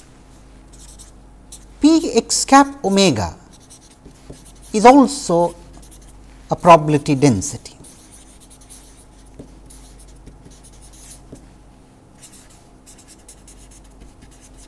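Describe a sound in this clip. A marker squeaks faintly on paper.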